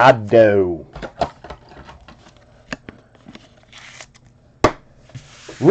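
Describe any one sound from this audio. A plastic card case clicks and taps as it is handled.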